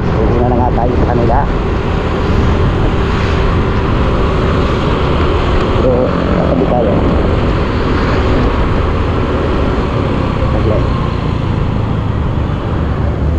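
A motor scooter engine hums steadily while riding.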